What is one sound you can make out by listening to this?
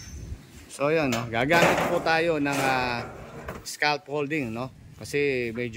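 Metal panels clatter and scrape.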